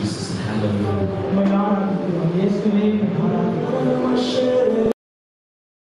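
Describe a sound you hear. A second man speaks through a microphone.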